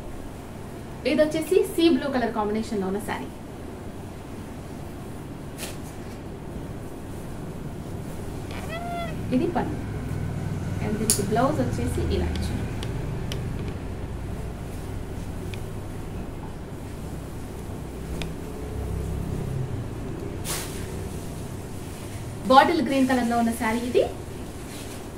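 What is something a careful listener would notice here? A young woman speaks in short bursts.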